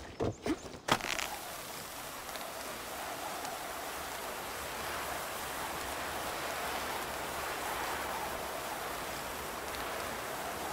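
A pulley whirs steadily along a rope.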